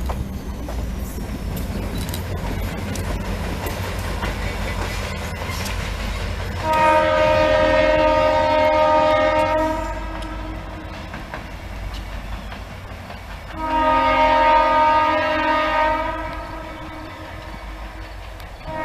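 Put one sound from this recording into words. A diesel locomotive engine rumbles low and steady.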